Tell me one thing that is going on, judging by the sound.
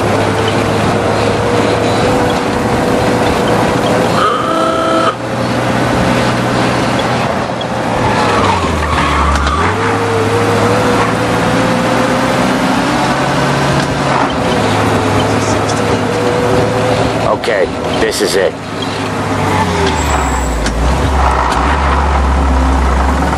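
An old car engine hums steadily and shifts gears as the car drives along.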